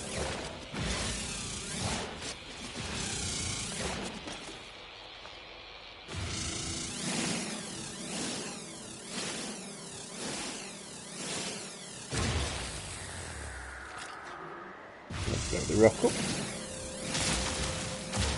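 A mining laser hums and crackles in bursts.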